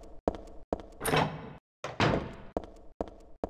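A heavy door creaks open and bangs shut.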